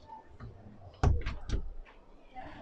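A door shuts with a sharp click.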